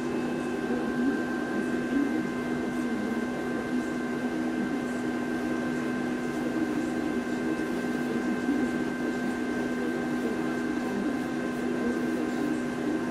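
A plastic spreader scrapes filler across a metal panel.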